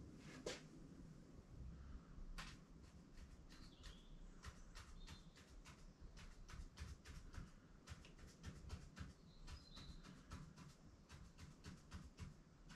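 A pen taps and scratches in quick short strokes.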